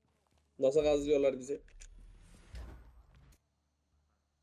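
A man speaks loudly and with animation close to a microphone.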